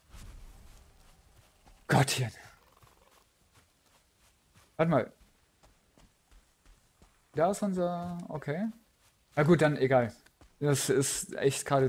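Footsteps tread softly on soft ground.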